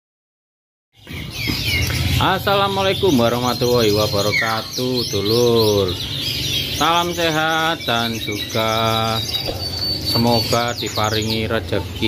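Small birds chirp and sing in trills nearby.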